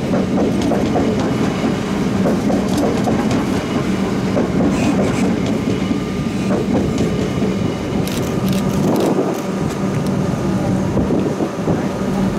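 A train rumbles past close by, its wheels clattering over the rail joints.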